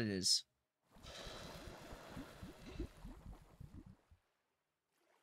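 Molten metal pours and hisses into a mould.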